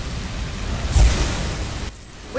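Plastic bricks clatter apart with a burst.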